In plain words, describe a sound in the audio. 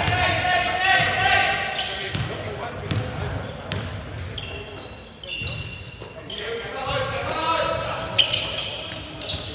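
Young men call out to each other across an echoing hall.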